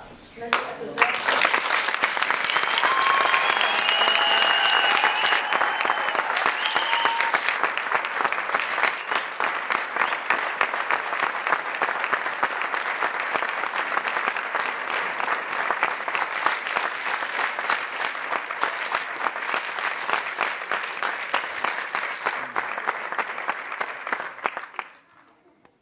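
A large audience applauds and cheers in an echoing hall.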